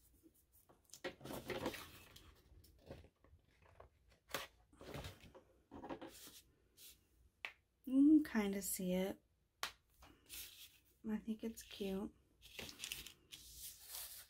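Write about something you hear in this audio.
Sheets of paper slide and flap against a table.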